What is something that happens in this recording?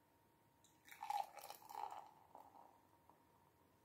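Beer pours from a bottle into a glass, splashing and fizzing.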